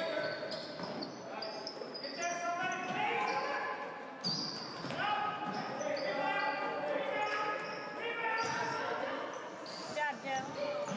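Young players shout to each other in a large echoing gym.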